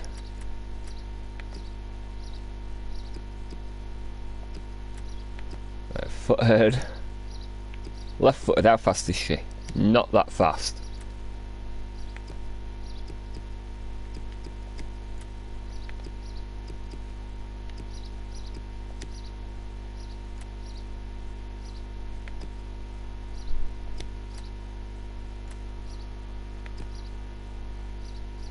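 Soft menu clicks tick now and then as selections change.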